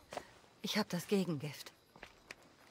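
A woman speaks briefly and calmly.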